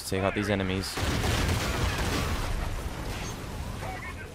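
Explosions rumble and roar nearby.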